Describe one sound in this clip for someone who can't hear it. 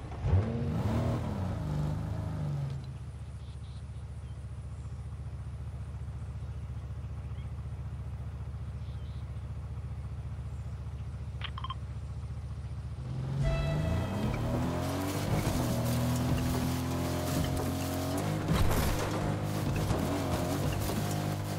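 A car engine revs and rises in pitch as it speeds up.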